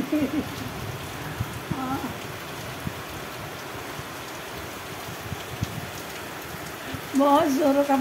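A middle-aged woman speaks close by, warmly and with animation.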